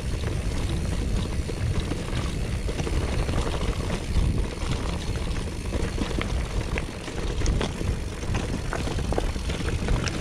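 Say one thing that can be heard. Bicycle tyres crunch and rattle over a rough, stony trail.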